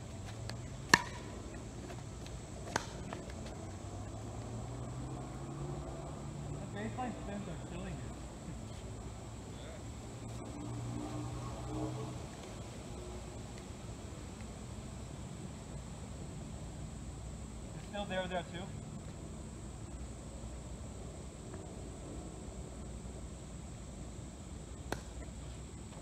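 Paddles strike a plastic ball with sharp pops.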